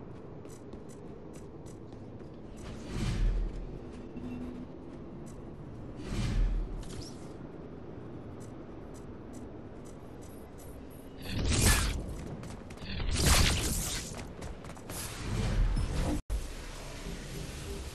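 Soft game menu whooshes and clicks come now and then.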